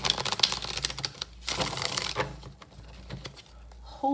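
Playing cards tap and slide together into a stack.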